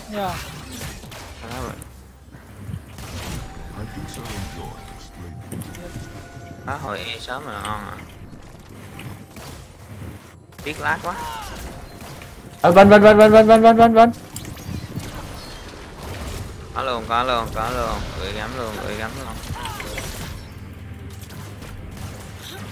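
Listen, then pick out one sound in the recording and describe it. Game fighting sounds clash and burst, with magic effects whooshing.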